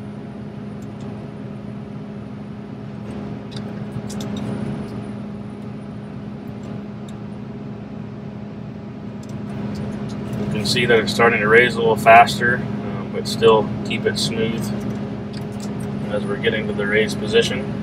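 A combine harvester's engine hums steadily from inside the cab.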